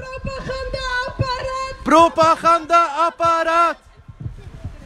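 A crowd chants loudly outdoors.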